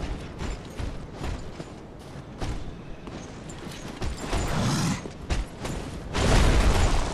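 Armoured footsteps crunch on snowy rock.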